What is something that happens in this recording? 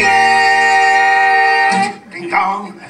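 Men sing a loud held note together.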